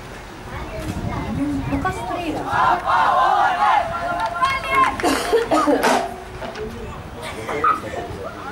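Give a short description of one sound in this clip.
Football players shout to each other from a distance across an open field.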